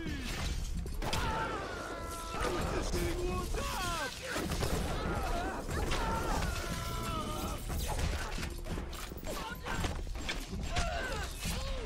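Gunshots bang rapidly in a game.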